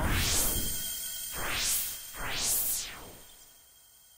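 A sword whooshes through the air several times.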